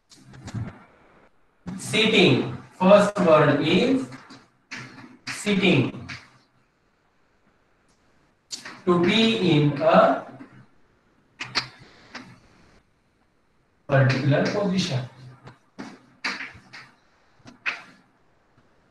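A man speaks clearly and slowly, like a teacher.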